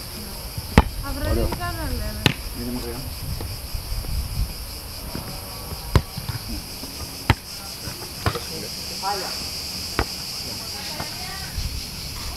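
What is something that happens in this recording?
A young man calls out to other players outdoors.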